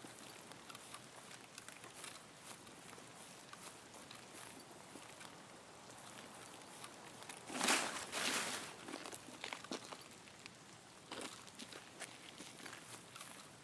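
Footsteps rustle through tall grass and crunch on gravel.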